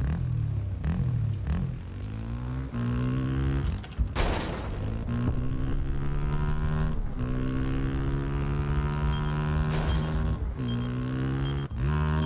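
A motorcycle engine revs and roars, rising and falling.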